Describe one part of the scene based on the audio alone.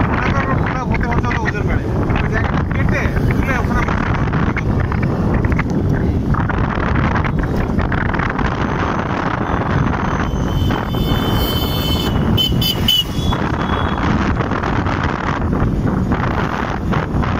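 A motorbike engine runs under way.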